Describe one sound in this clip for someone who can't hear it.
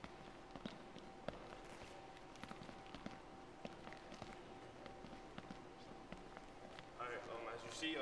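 Sneakers squeak and thud on a hard court in a large echoing gym.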